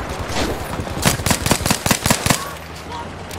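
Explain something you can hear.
A pistol fires a rapid series of shots.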